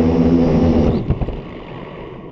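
A drone thumps down onto grassy ground.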